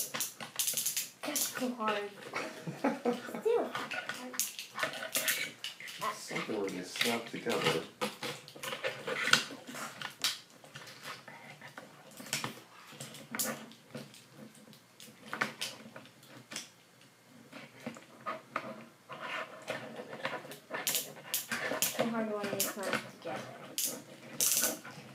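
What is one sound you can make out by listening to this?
Plastic toy parts click and clatter as they are snapped together.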